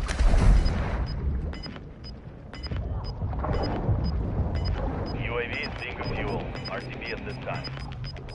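Water gurgles and bubbles, muffled as if heard underwater.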